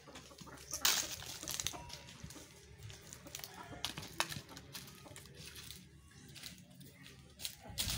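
A donkey's hooves scuff softly on dry, dusty ground.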